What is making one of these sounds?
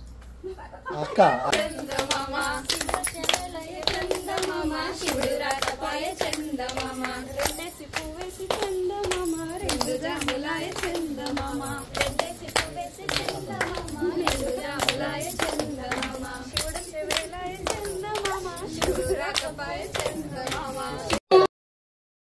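Hands clap together in a steady rhythm.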